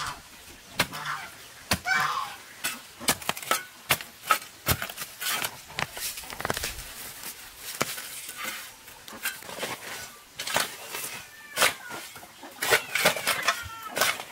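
A hoe chops into dry, stony soil.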